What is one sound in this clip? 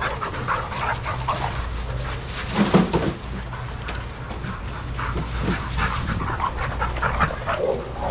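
Dogs scuffle and pad about on sand.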